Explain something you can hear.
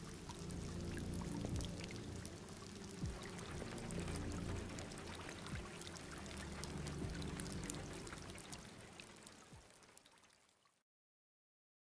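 Steady rain patters down and slowly fades away.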